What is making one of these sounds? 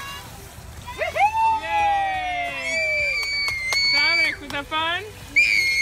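A young boy shouts excitedly nearby.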